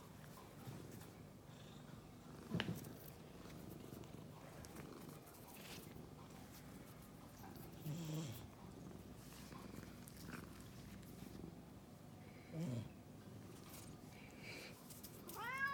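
A cat purrs softly close by.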